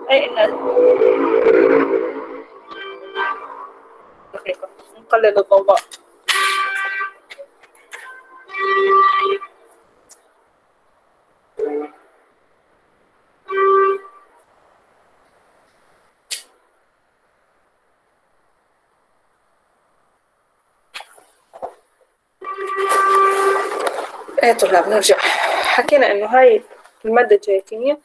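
A young woman speaks calmly over an online call, pausing often.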